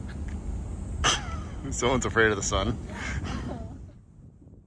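A young woman laughs and speaks excitedly close by.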